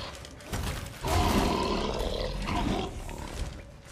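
A sword swishes and strikes a large creature.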